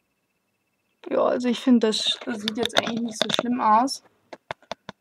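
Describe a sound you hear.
A young woman speaks close to the microphone with animation.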